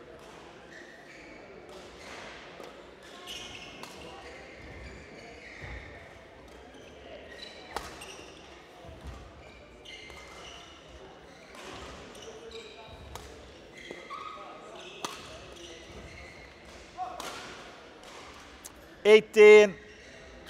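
Rackets strike a shuttlecock back and forth with sharp pops in a large echoing hall.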